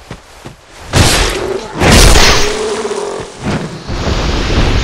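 A sword swings and strikes with a sharp thud.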